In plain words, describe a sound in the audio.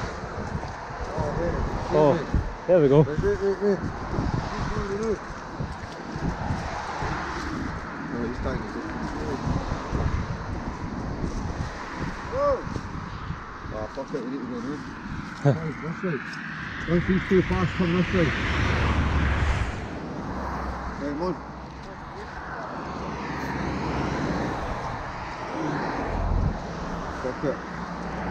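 Footsteps scuff on a paved path.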